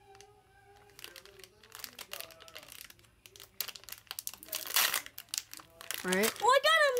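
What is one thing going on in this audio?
A child crinkles a foil wrapper with quick, rustling crackles.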